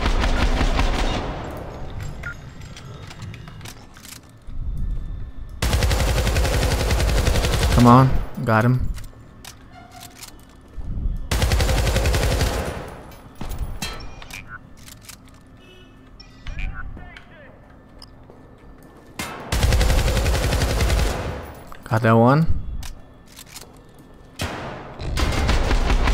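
Automatic gunfire rattles in loud, short bursts.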